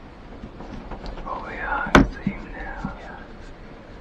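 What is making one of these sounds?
A man whispers close by.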